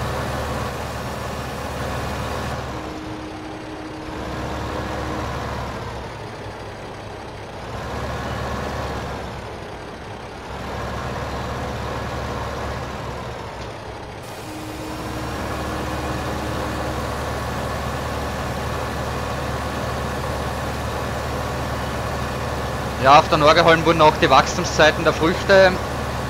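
A tractor engine hums steadily as the tractor drives along.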